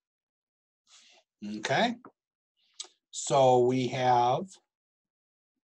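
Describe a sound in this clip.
A middle-aged man speaks calmly through a microphone in an online call.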